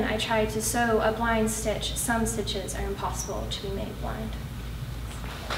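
A young woman reads aloud calmly into a microphone.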